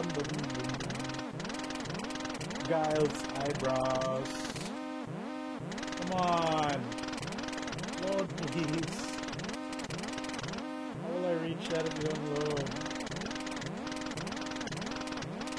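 Bouncy electronic game music plays steadily.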